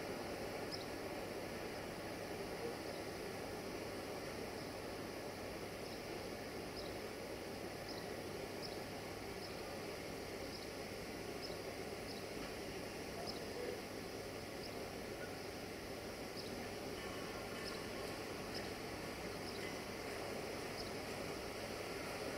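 A train rumbles slowly away along the tracks.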